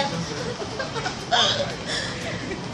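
Young women laugh close by.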